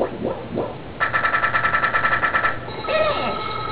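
Quick electronic chiming game sound effects ring out.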